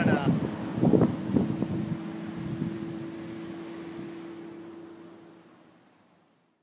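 Waves wash gently onto a stony shore.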